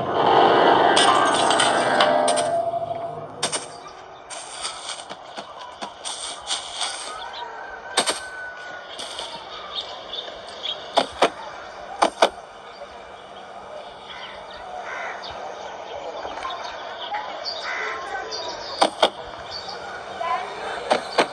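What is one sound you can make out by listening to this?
Fingertips tap lightly on a glass touchscreen.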